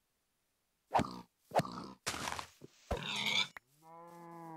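A pig squeals as it is struck.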